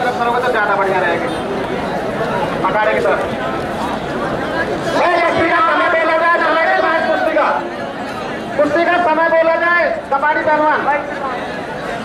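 Men shout and chant with animation from a crowd.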